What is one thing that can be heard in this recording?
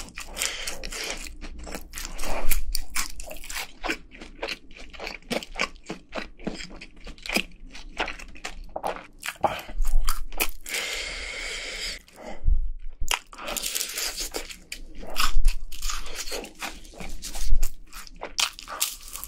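A young man chews loudly and wetly close to a microphone.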